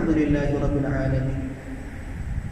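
A man chants a prayer close by.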